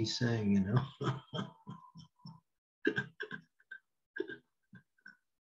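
An elderly man laughs softly over an online call.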